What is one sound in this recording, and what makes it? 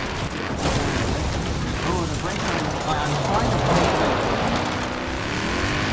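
Tyres crunch and skid over dirt and gravel.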